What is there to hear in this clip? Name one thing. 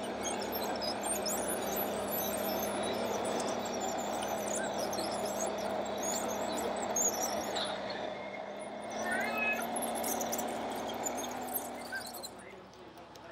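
A small electric motor whines steadily.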